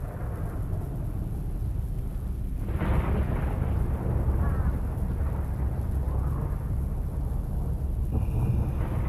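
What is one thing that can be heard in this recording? Wind blows steadily outdoors through bare trees.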